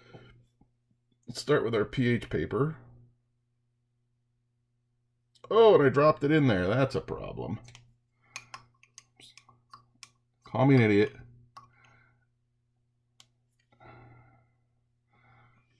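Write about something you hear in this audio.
A glass beaker clinks softly as it is handled.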